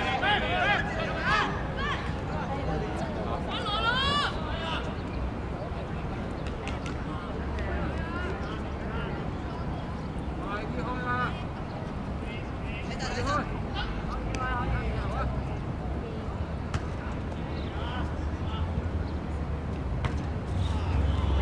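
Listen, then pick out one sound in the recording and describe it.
Young men shout and call out to each other across an open outdoor field.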